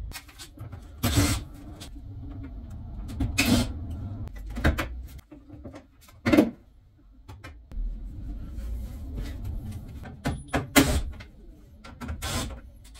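Tools and car parts knock and clank sharply now and then.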